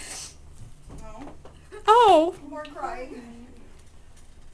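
A young woman squeals and sobs with emotion close by.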